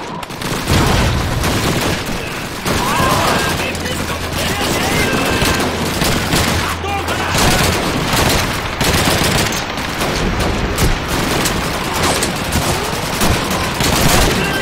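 Gunfire crackles and booms throughout.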